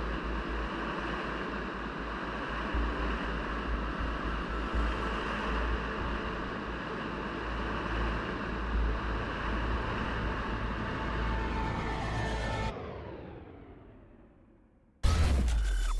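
A cart rumbles steadily along rails, then fades away.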